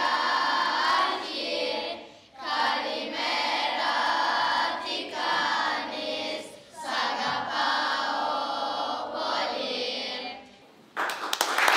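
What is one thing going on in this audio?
Children sing together.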